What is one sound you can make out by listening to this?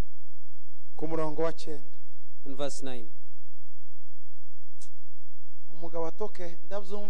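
A man speaks through a microphone in short bursts with pauses.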